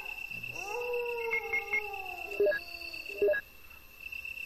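Electronic menu tones beep in short blips.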